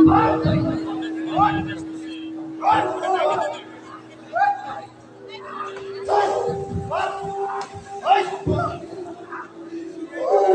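A man cries out in anguish, with a loud echo.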